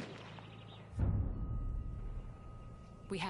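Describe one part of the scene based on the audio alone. A heavy rifle shot booms with a deep thud.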